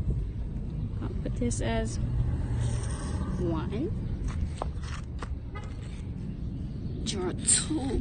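Chalk scrapes across rough asphalt.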